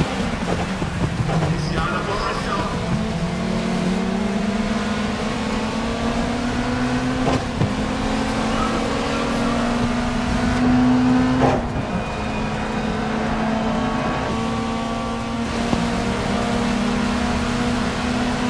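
Other racing cars roar close by.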